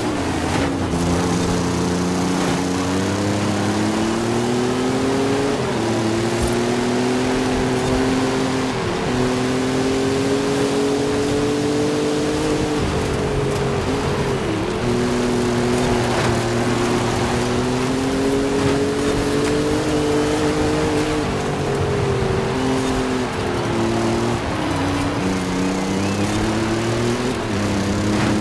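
Tyres hiss and crunch over a wet, loose road surface.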